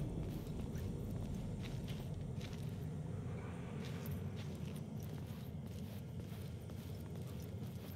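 Footsteps fall slowly on a hard floor.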